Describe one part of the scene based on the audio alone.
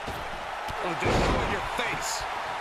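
A body slams down hard onto a wrestling ring mat with a heavy thud.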